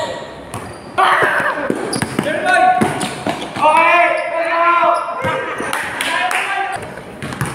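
A basketball bounces on a hard court, echoing under a roof.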